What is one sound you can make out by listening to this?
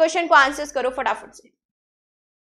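A young woman speaks clearly into a microphone.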